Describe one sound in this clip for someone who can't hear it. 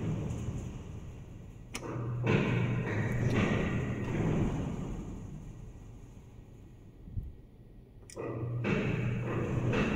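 An elevator button clicks when pressed.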